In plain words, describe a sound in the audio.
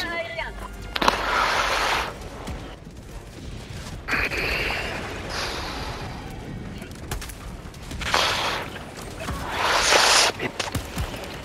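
Explosions boom and roar.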